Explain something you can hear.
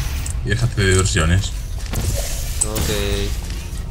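A sci-fi gun fires with a short electric zap.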